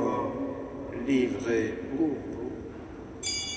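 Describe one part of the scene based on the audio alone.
A man chants in a large echoing hall.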